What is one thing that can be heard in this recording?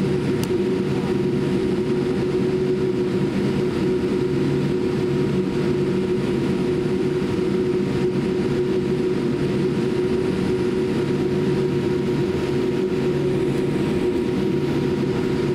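A jet airliner's engines hum steadily from inside the cabin as the plane taxis.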